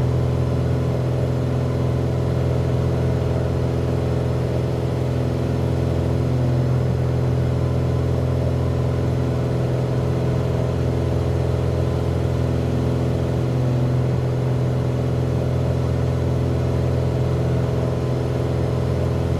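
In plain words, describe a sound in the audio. A small plane's propeller engine drones steadily, heard from inside the cabin.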